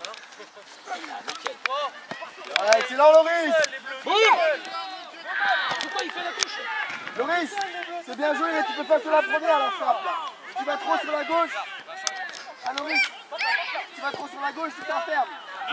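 Children shout and call out across an open outdoor field.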